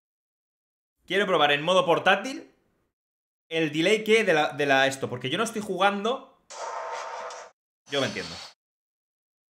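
A young man speaks with animation into a close microphone.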